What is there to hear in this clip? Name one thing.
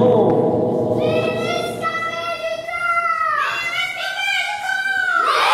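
A group of children sing together in long, held notes.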